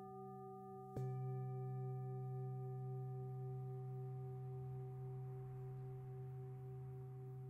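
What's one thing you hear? A second struck singing bowl rings out, deeper and warmer.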